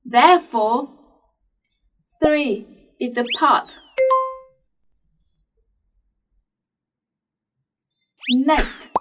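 A young woman speaks clearly and brightly into a close microphone.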